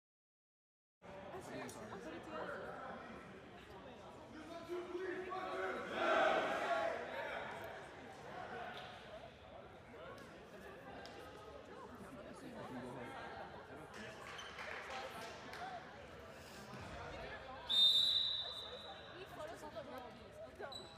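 Shoes squeak on a hard court in a large echoing hall.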